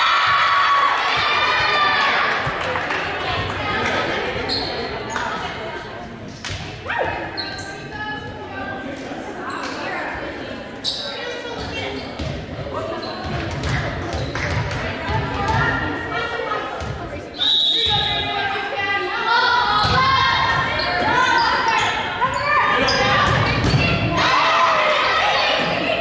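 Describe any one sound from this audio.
A crowd of young women shouts and cheers across a large echoing gym.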